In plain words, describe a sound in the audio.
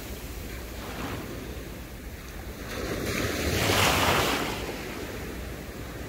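Shallow water laps gently against the shore.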